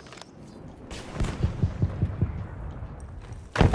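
Quick footsteps crunch on rubble.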